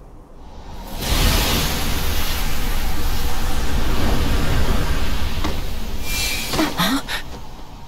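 Dark energy whooshes up in a loud surge.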